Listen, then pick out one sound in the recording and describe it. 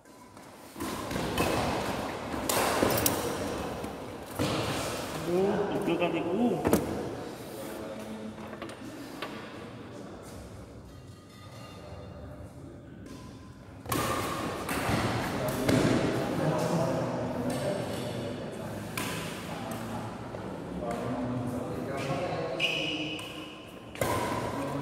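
Rackets strike a shuttlecock with sharp pops in an echoing hall.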